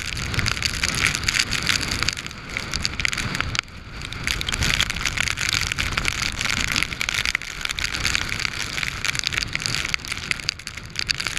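Strong wind buffets the microphone outdoors in gusts.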